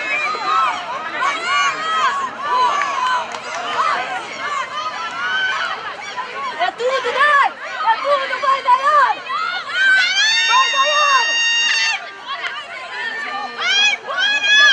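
A crowd of young women shouts and cheers outdoors.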